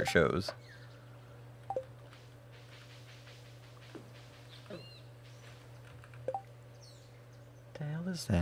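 A soft electronic blip sounds as a game menu opens and closes.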